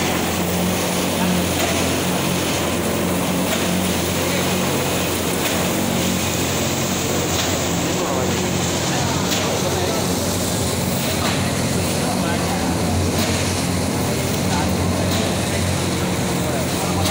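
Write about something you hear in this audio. Loud factory noise fills the room with clatter.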